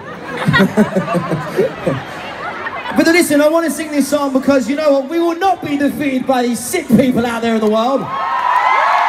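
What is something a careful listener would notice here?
A male singer sings loudly through a loudspeaker system.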